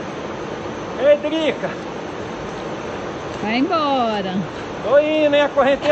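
An elderly man talks loudly across the water outdoors.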